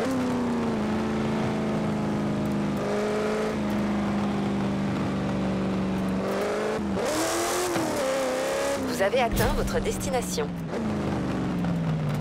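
Tyres skid and crunch over dirt and gravel.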